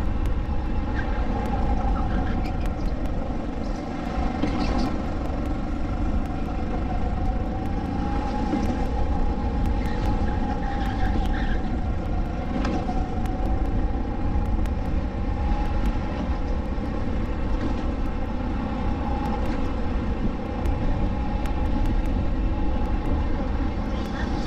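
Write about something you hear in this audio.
A four-stroke go-kart engine drones at full throttle close by.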